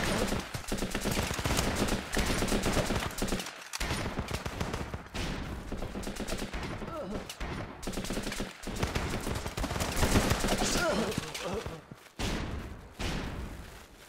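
Rapid gunshots crackle in bursts.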